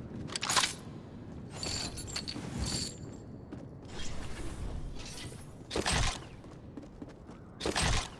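Game footsteps thud on a wooden floor.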